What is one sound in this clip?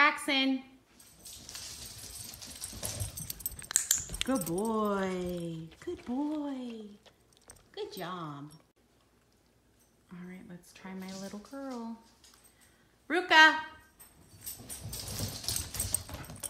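Dogs' paws patter and scramble across a hard floor.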